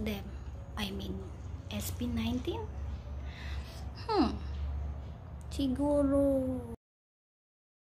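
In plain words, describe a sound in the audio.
A young woman talks expressively, close by.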